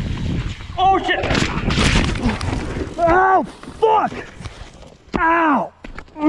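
A mountain bike crashes onto a dirt trail.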